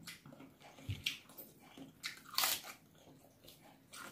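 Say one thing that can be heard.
Cabbage leaves crackle as they are torn by hand.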